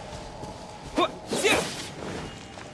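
A sword swishes with a sparkling crackle.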